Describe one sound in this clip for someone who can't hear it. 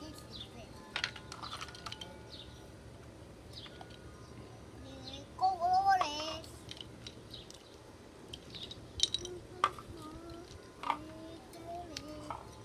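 Plastic toy blocks clatter and click together.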